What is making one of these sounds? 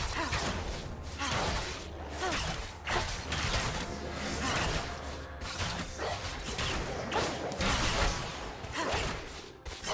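Game weapons hit with sharp impacts.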